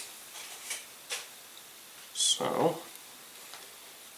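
Adhesive tape rips as it is pulled from a roll.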